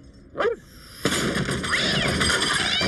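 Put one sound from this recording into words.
Objects rattle and clatter inside a metal skip.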